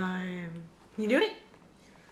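A young girl shouts excitedly nearby.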